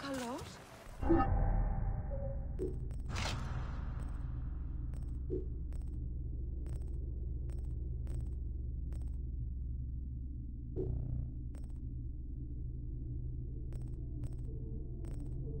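A low, steady drone hums.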